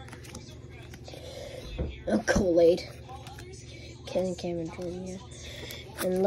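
Trading cards slide and tap against each other as they are handled.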